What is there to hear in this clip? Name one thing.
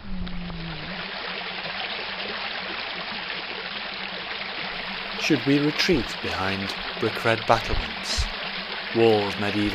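Water rushes and splashes steadily over rocks.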